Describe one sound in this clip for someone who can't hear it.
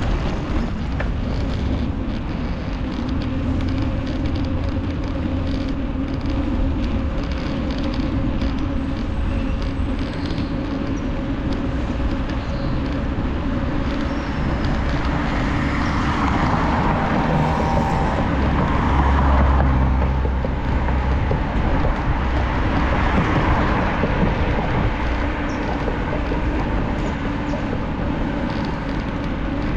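Wind buffets the microphone steadily while riding outdoors.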